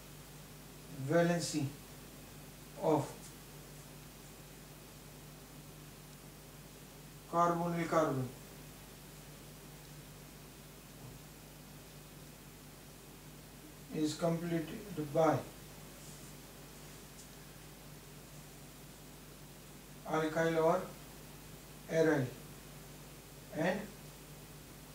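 A man speaks calmly in short phrases with long pauses.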